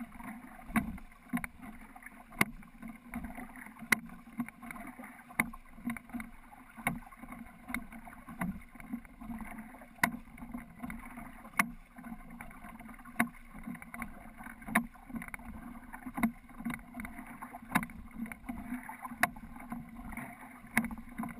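Oar blades splash and swish through the water in a steady rhythm.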